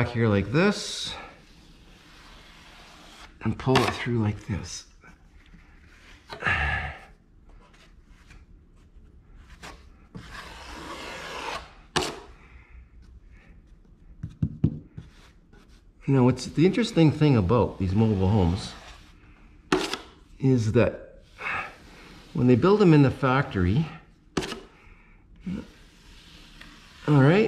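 A metal scraper rasps against a plaster surface.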